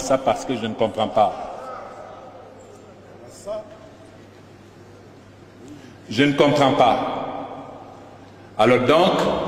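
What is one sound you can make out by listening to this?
A man speaks with animation into a microphone, his voice ringing through a large echoing hall.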